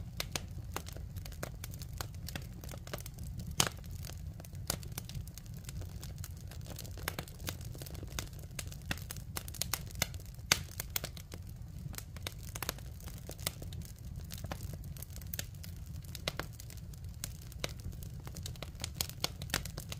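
Flames roar steadily in a fire.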